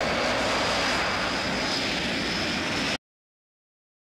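A jet engine roars loudly with a steady high whine.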